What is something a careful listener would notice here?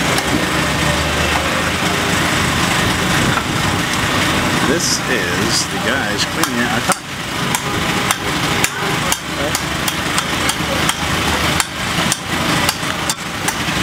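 Conch shells clatter and knock against each other.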